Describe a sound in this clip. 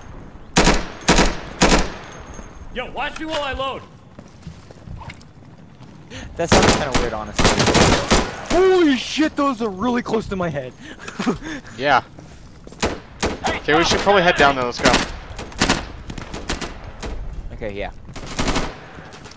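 Rifle shots ring out in sharp bursts.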